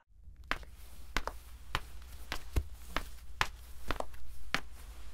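Footsteps tap on a hard floor at an even pace.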